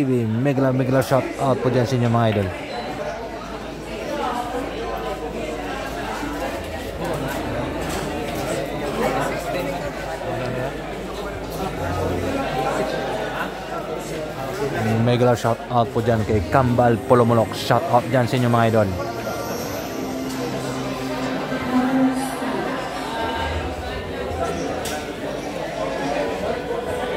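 A crowd of young men murmurs and chatters nearby.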